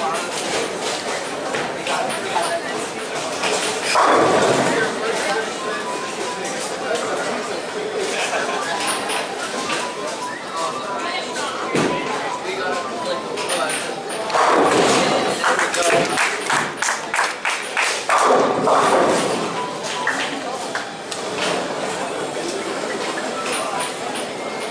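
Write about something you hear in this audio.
Distant pins clatter steadily in a large echoing hall.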